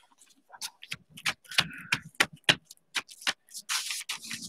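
Hands rub and pat on paper.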